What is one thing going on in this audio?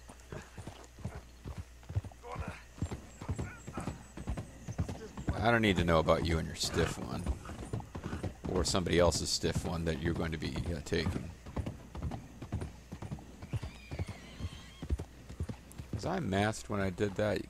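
A horse's hooves clop at a steady walk.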